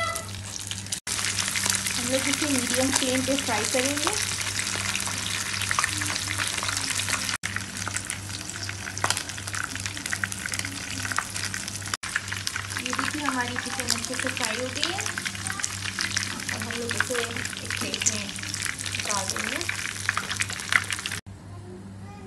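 Hot oil sizzles and crackles loudly in a frying pan.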